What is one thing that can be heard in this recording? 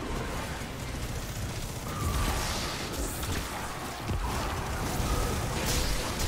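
Energy weapons fire in rapid bursts with booming impacts.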